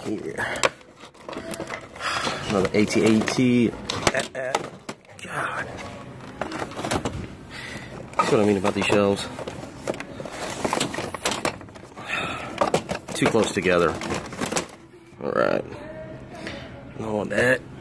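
Cardboard boxes rustle and knock as a hand moves them on a shelf.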